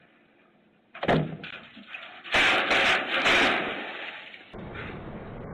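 A man falls from a footbridge and splashes into water.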